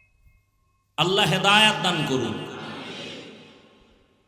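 A man chants loudly into a microphone, his voice echoing through a loudspeaker.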